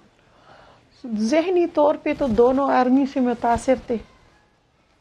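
A middle-aged woman speaks with feeling over a remote link.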